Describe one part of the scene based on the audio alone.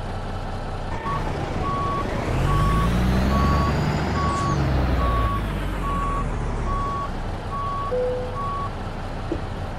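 A truck's reversing alarm beeps.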